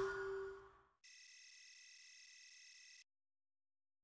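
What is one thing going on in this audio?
A short chime rings as a match ends.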